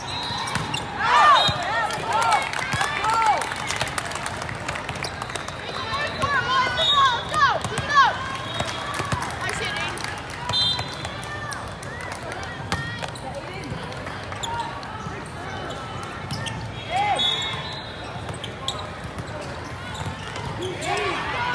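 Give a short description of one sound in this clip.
Sneakers squeak on an indoor court.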